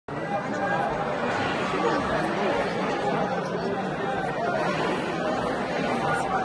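A crowd of men and women talks and murmurs close by, echoing in a large stone hall.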